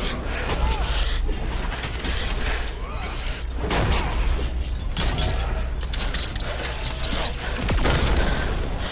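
Heavy blows land with booming thuds.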